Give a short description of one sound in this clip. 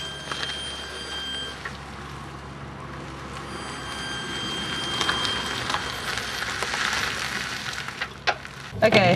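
A car engine idles and runs quietly as the car rolls forward.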